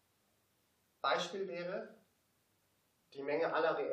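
A young man speaks in a lecture, pausing between phrases.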